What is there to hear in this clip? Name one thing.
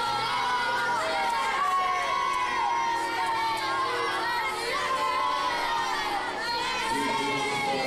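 A crowd of people talks and shouts loudly close by.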